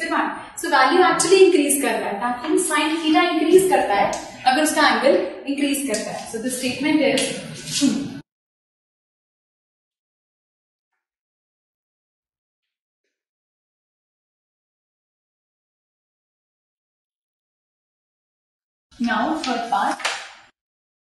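A young woman explains with animation, close to a microphone.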